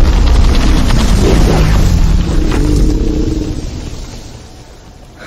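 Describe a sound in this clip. A great tree's branches thrash and creak in a roaring wind.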